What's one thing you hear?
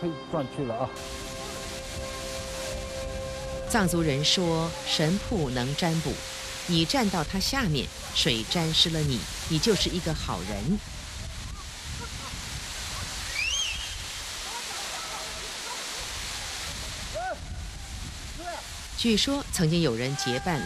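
Water roars and sprays down heavily close by.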